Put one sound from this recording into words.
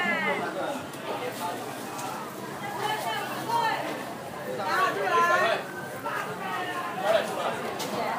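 An elderly man talks with a customer.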